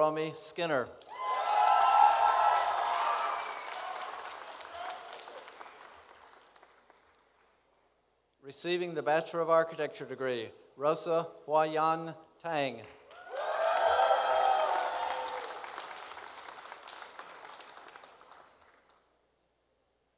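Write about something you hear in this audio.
An audience claps and cheers, then the applause fades.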